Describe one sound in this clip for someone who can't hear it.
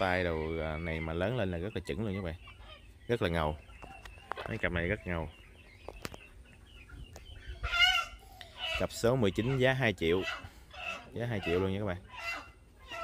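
A rooster crows loudly and close by, over and over.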